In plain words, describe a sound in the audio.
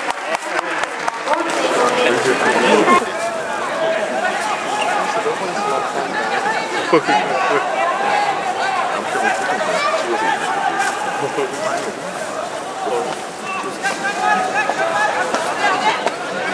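A large stadium crowd cheers and chants loudly throughout.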